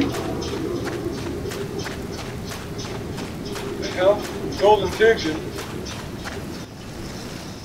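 Quick footsteps run over dry sandy ground.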